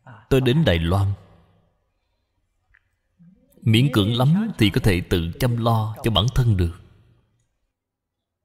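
An elderly man speaks calmly and warmly into a microphone.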